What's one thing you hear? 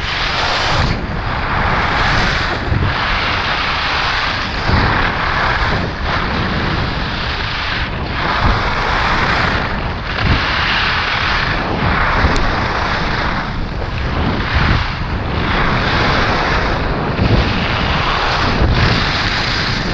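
Skis carve and scrape over hard snow in rhythmic turns.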